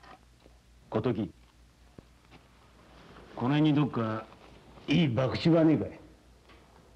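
A young man speaks calmly in a low voice close by.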